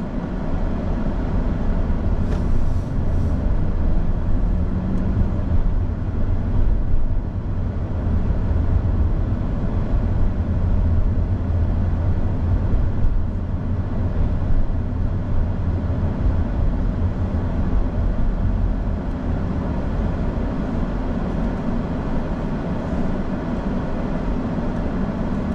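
A car engine hums low and steady from inside the car as it drives.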